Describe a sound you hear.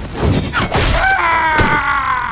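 A middle-aged man screams loudly in fear.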